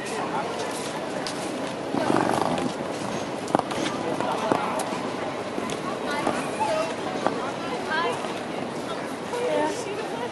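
Street noise hums steadily outdoors.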